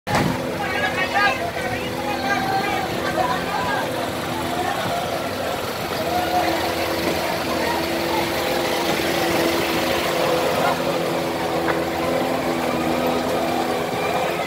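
A fire engine's motor idles steadily nearby.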